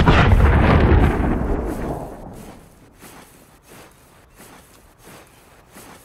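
Tall grass rustles as someone pushes through it.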